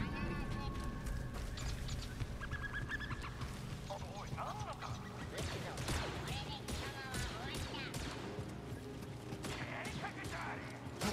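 Quick footsteps run over grass and wooden planks.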